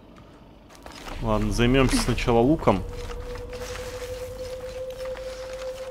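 Footsteps crunch on gravel and dry leaves.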